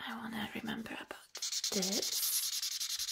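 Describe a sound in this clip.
A young woman speaks softly, close to a microphone.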